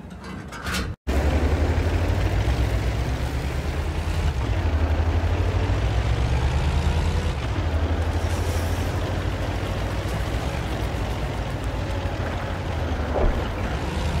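A tank engine rumbles and growls steadily as it drives.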